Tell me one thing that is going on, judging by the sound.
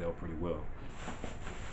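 A young man speaks close to the microphone.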